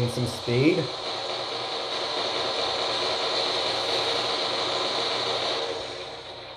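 Heavy guns fire in rapid, rattling bursts.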